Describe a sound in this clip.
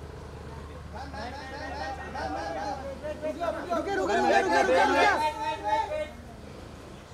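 Men and women talk excitedly close by.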